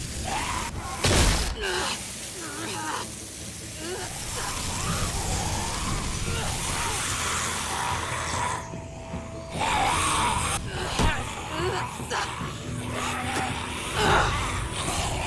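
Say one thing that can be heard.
Heavy blows thud.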